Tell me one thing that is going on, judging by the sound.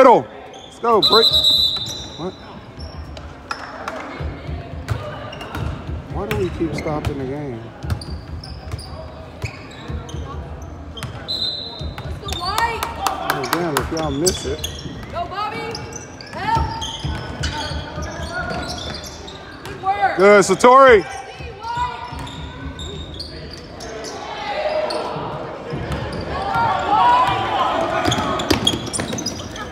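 Spectators shout and cheer from the stands.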